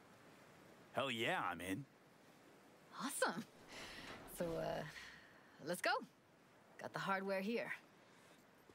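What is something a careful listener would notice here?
A young woman answers with animation.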